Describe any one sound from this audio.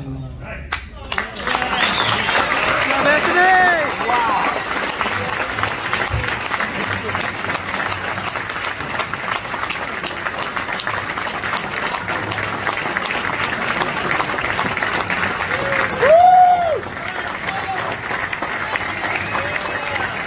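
A crowd claps and cheers loudly.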